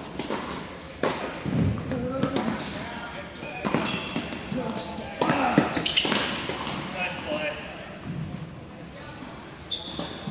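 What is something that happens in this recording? Tennis balls are struck with rackets in a large echoing hall.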